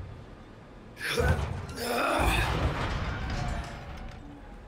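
A man grunts with effort, close by.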